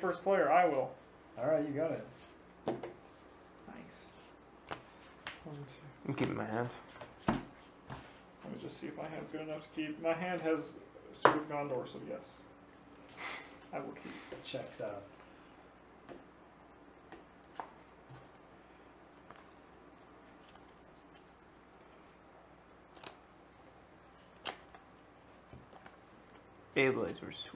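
Playing cards tap and slide on a table.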